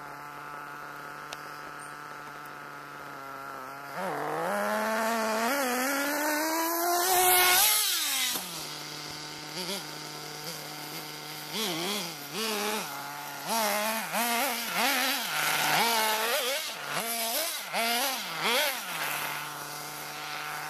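A small model car engine whines loudly, revving up and down as it races past close by.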